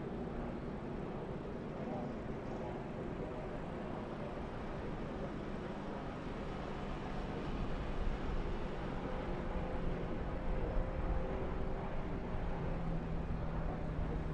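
Race car engines roar as cars speed around a track.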